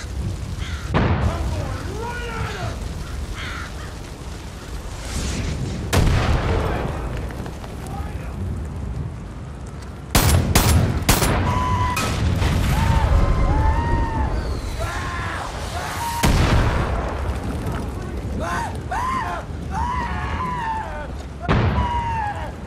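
Gunshots fire sharply in bursts, with a short echo.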